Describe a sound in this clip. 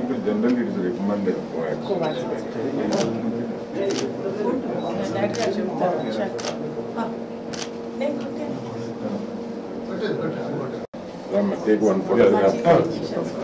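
Several people talk over each other in a busy room.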